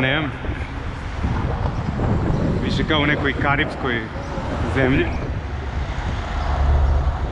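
Traffic rumbles steadily along a street.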